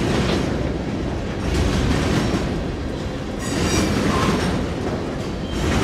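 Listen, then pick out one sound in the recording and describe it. A freight train rumbles past close by, its wheels clattering over the rails.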